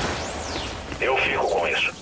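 Electric sparks crackle and sizzle.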